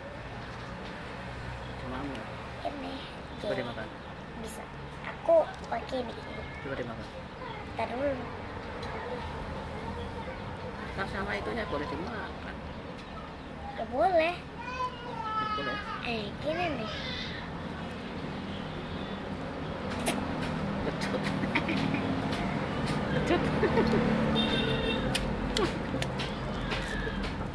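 A cat gnaws and crunches on a bone close by.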